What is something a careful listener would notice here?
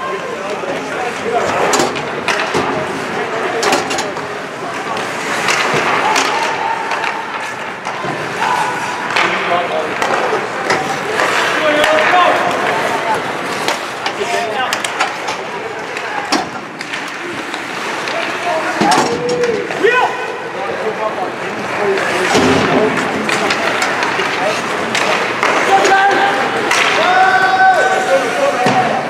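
A crowd of spectators chatters and shouts in a large echoing rink.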